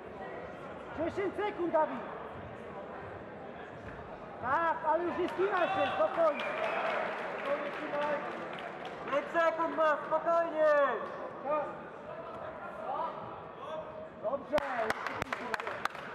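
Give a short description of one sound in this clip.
Men shout loudly from the sidelines.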